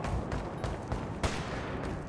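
Boots clatter on stairs.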